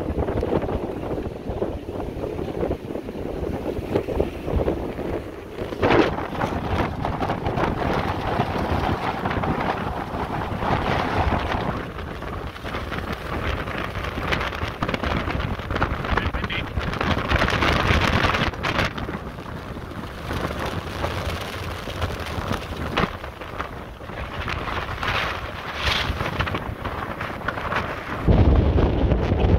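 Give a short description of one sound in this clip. Choppy waves slap and splash against a boat's hull.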